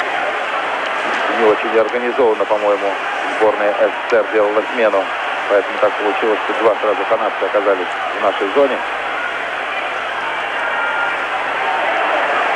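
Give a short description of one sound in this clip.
Hockey sticks clack against each other and the ice.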